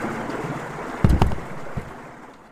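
A swinging door opens with a thud.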